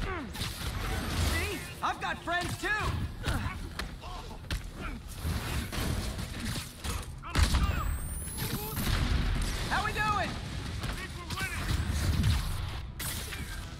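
Punches land with sharp thuds during a fight.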